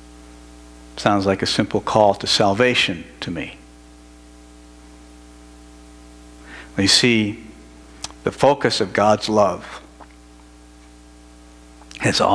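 A middle-aged man speaks with emphasis through a headset microphone, in short bursts with pauses.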